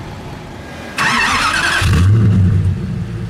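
A sports car engine starts with a loud roar.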